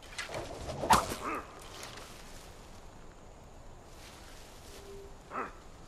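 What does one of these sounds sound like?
Leaves and stalks rustle as someone pushes through dense plants.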